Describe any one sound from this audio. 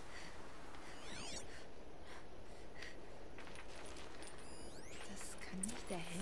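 A shimmering electronic tone sweeps and glitters.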